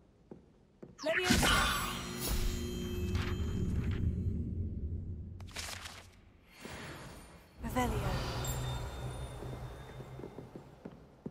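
A magical spell whooshes and shimmers loudly.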